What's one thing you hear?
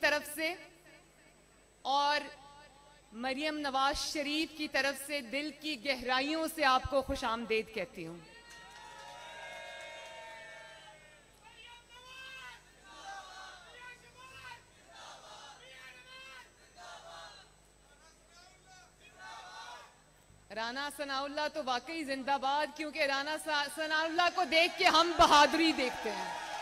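A woman speaks with animation through a microphone and loudspeakers, pausing now and then.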